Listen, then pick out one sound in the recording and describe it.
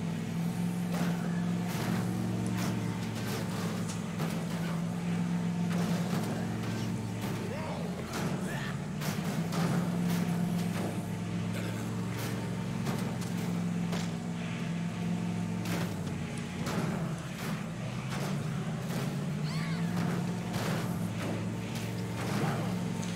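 A van thuds into bodies again and again.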